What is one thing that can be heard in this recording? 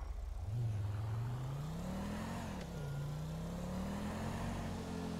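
A car engine revs up, climbs in pitch, drops briefly at a gear change and then pulls steadily.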